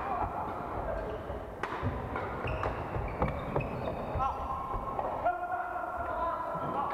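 Shoes squeak sharply on a wooden court.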